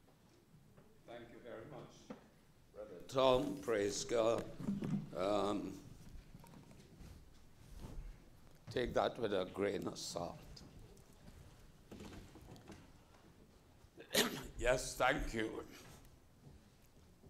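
A man speaks calmly into a microphone, in pauses, in an echoing hall.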